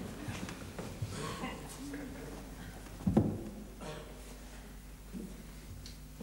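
A man's footsteps thud on wooden steps.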